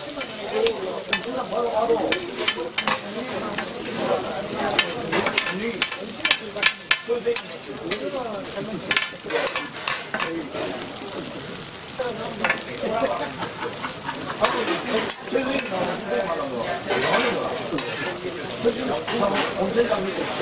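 A metal spatula scrapes and taps on a griddle.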